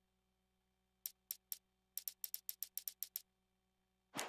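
Short clicks tick rapidly one after another.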